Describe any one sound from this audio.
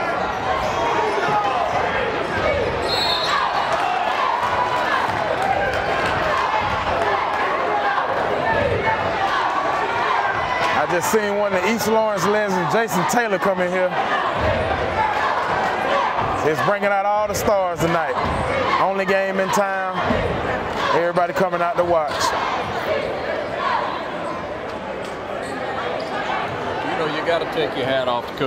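A large crowd murmurs and cheers in an echoing gym.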